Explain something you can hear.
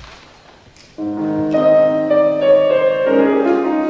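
A woman sings.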